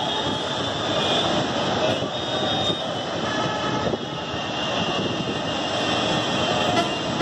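Bus engines and city traffic rumble in a steady, busy din outdoors.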